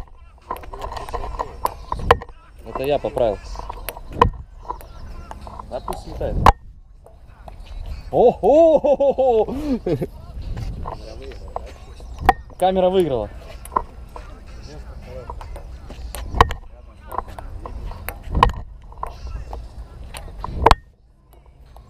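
A ball knocks sharply against a paddle and a table, again and again.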